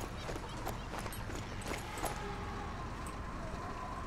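Footsteps crunch quickly on stone and gravel.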